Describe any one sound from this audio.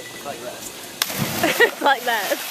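A body splashes loudly into water.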